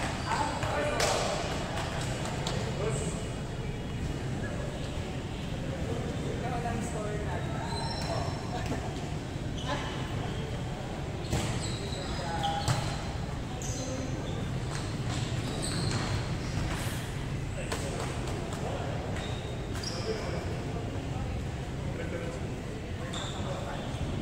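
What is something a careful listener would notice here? A volleyball is hit sharply in a large echoing gym.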